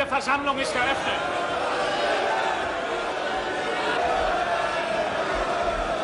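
A crowd of men shouts and cheers.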